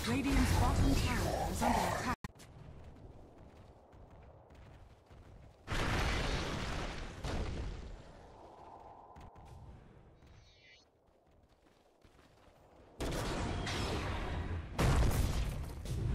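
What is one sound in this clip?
Magic spells crackle and burst in a game battle.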